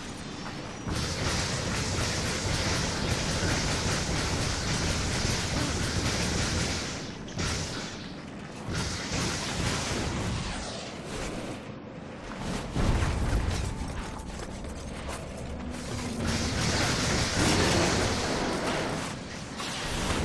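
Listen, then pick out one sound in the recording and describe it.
Crackling energy blasts roar and hiss loudly.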